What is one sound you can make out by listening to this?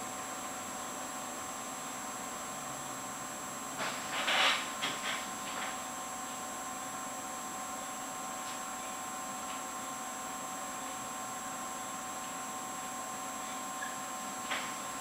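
An old computer monitor gives off a steady high-pitched whine.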